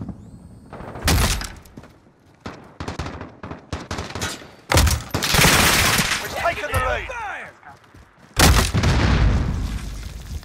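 Gunshots crack in loud bursts.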